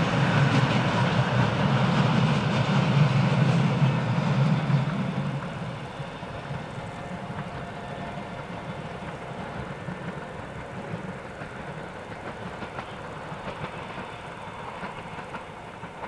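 Wheels clatter and squeal on the rails.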